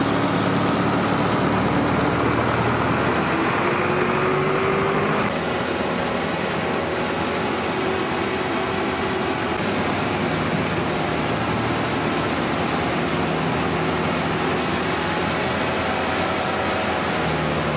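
A boat engine roars loudly and steadily.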